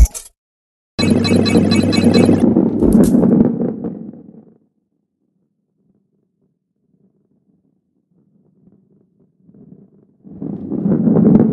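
A ball rolls along a wooden track with a low rumble.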